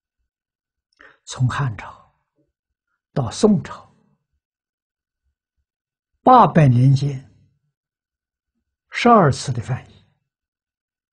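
An elderly man speaks calmly and slowly into a close microphone, in short phrases with pauses.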